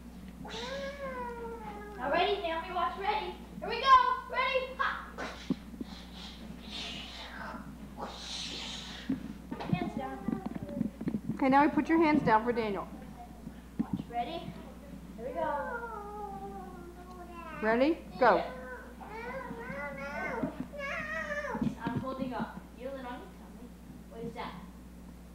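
A young boy talks playfully nearby.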